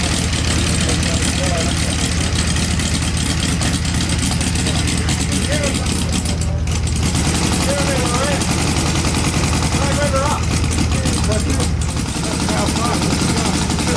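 A small model engine runs fast with a loud, steady buzzing rattle.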